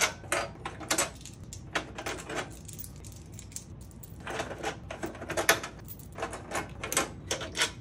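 Plastic parts click and rattle under a hand.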